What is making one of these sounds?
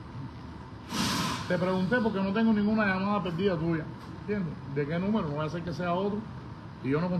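A middle-aged man speaks with animation into a phone held close to his mouth.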